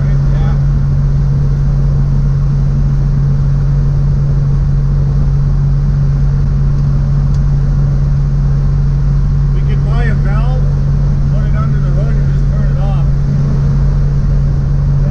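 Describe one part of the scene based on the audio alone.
A car engine drones steadily inside the car.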